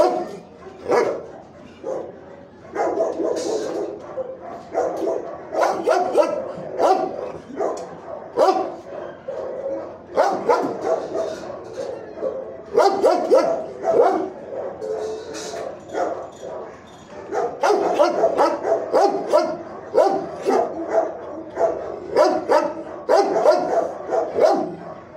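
Dogs whine and whimper close by.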